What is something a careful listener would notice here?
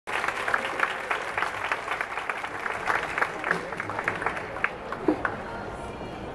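An audience applauds outdoors.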